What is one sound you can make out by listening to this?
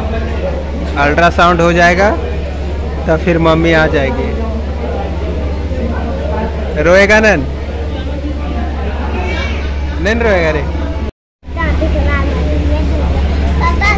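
Young children call out loudly in high voices close by.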